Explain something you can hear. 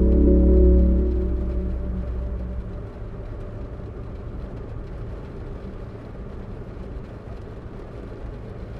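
A car engine roars loudly, then eases to a low rumble.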